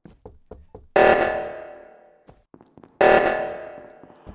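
An alarm blares in loud, repeating bursts.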